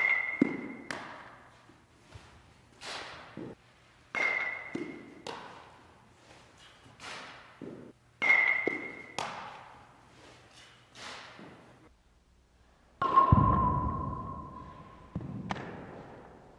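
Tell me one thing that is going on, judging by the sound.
A baseball smacks into a leather glove with a loud echo.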